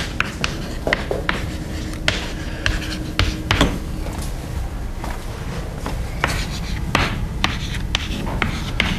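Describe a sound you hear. Chalk taps and scrapes on a chalkboard.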